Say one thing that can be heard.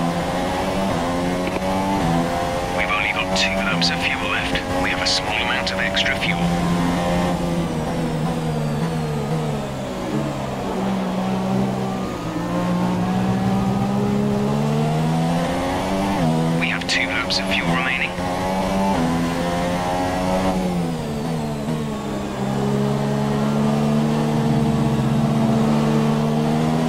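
A racing car engine screams at high revs, rising and dropping in pitch as gears shift.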